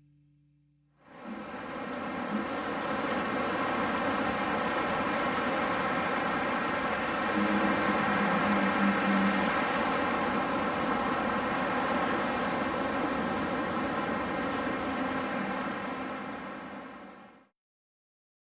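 Waves wash steadily onto a sandy shore.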